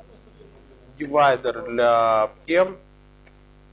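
A man speaks briefly nearby, calmly.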